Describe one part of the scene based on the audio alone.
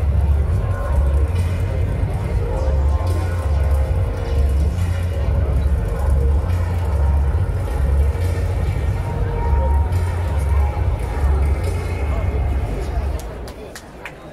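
Loud music with a deep, pulsing bass plays over loudspeakers outdoors.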